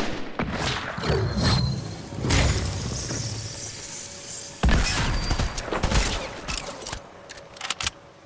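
Wooden panels clatter as they are built.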